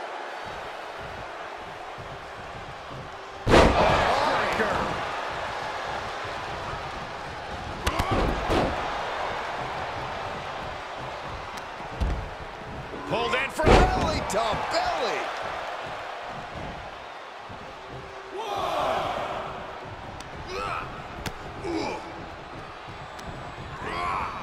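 A crowd cheers and roars throughout in a large arena.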